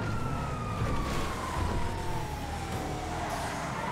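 A car engine revs as it drives off.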